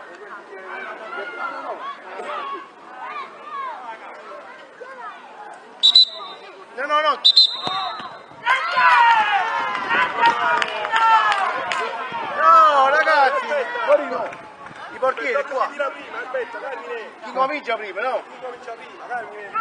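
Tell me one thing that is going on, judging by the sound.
Children shout and cheer outdoors.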